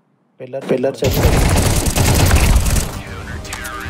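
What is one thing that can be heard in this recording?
A rifle fires a rapid burst of loud gunshots.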